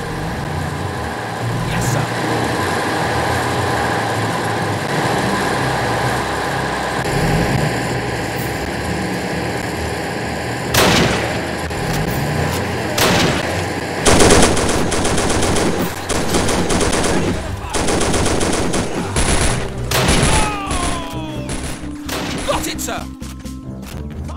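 A tank engine rumbles and clanks steadily.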